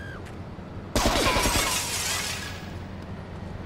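A pistol shot cracks, echoing in a hollow room.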